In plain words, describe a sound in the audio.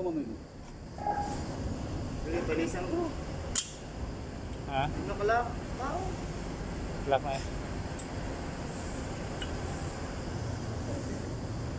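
Metal parts clink and scrape as they are handled.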